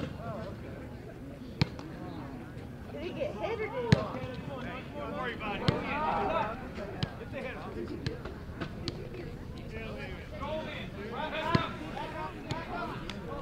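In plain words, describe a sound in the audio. Men and boys call out to each other across an open field outdoors.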